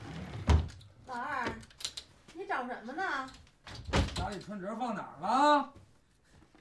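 A woman speaks nearby in a questioning tone.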